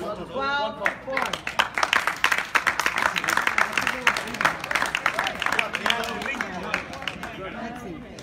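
An audience claps and cheers loudly in an echoing hall.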